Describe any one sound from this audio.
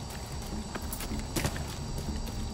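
A body lands with a heavy thump after vaulting a barrier.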